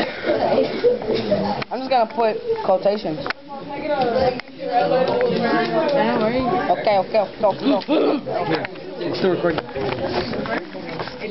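Teenage girls talk with animation close by.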